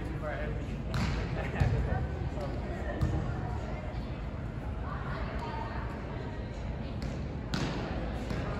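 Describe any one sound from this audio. A volleyball is struck with sharp slaps that echo in a large hall.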